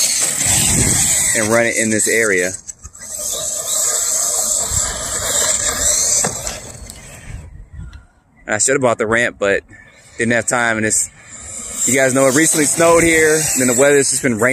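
A toy car's electric motor whines as it speeds about.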